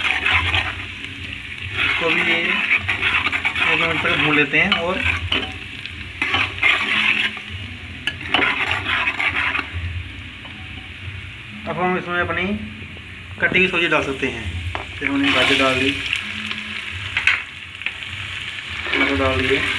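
Oil sizzles in a pot.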